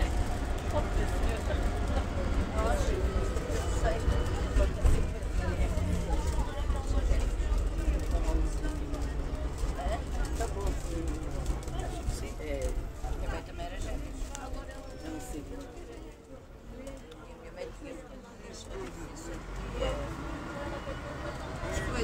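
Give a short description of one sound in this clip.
A bus engine rumbles low and steady, louder at first and quieter later.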